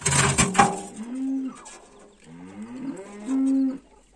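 Thin sheet metal clinks softly as it is bent by hand.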